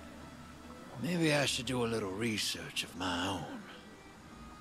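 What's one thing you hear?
A man speaks calmly, musing to himself.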